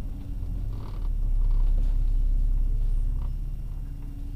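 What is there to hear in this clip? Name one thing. A van drives past on a nearby road.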